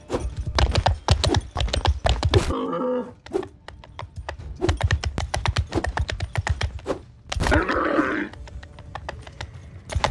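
Footsteps thud quickly on the ground while running.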